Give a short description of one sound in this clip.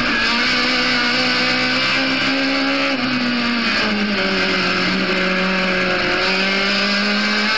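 A racing car engine roars loudly from inside the cabin, its pitch shifting as it changes gear.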